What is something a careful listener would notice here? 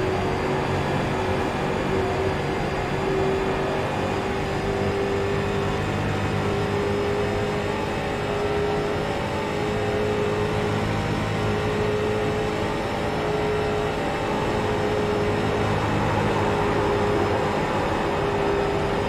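A race car engine drones loudly at high speed.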